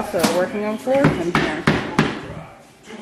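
A mallet taps on wooden floor planks.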